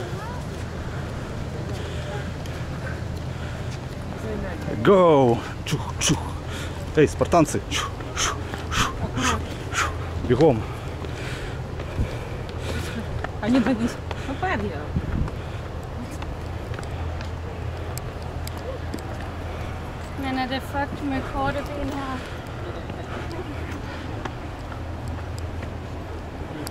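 Footsteps climb steps.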